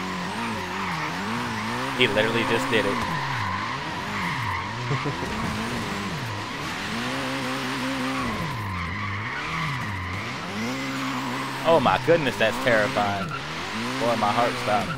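A car engine revs hard, its pitch rising and falling again and again.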